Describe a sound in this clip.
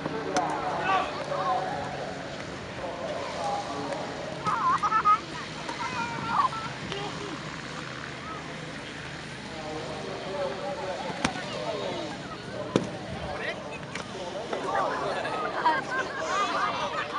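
A crowd chatters in the open air.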